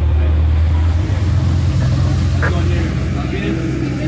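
Water splashes and churns in a boat's wake.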